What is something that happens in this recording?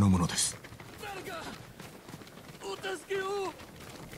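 Footsteps run over packed dirt.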